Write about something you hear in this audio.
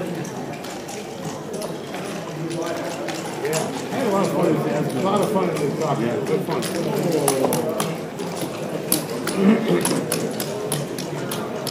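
Checkers click and slide on a wooden board.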